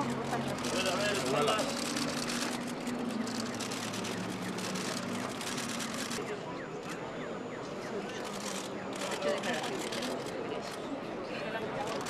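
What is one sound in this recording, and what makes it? A crowd murmurs nearby outdoors.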